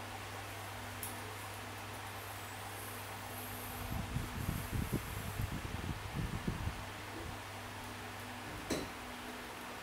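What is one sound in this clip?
A finger taps on a tablet's glass.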